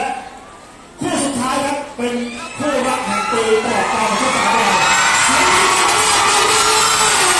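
A crowd of young women screams and cheers.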